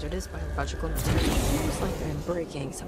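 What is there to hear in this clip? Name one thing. A heavy metal barrel crashes and explodes with a loud boom.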